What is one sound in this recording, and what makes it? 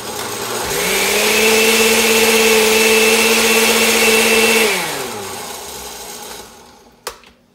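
A blender whirs loudly, then winds down.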